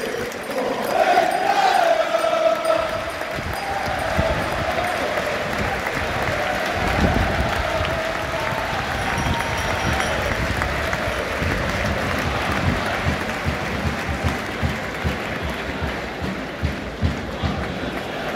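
A large crowd roars and chants in an open stadium.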